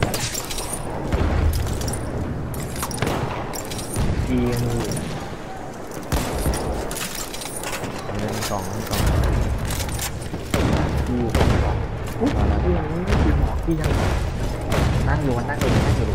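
Gunfire and explosions crack and boom nearby, over and over.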